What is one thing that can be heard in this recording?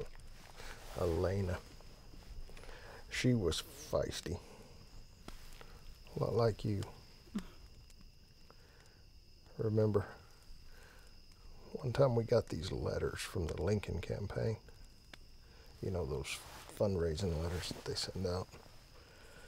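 An elderly man speaks calmly in a low voice, close by.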